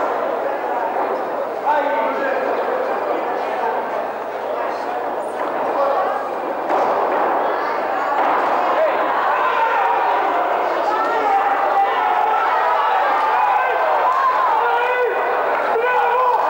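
A crowd shouts and cheers loudly in a large hall.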